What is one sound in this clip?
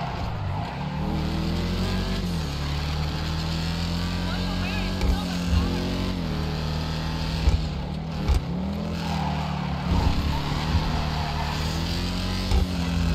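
A car engine roars loudly, revving up and down as the car speeds along.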